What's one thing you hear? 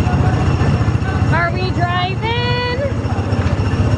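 A small child babbles and squeals close by.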